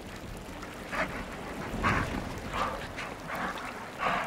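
A wolf yelps and barks close by.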